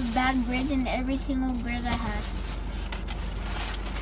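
Paper wrapping rustles.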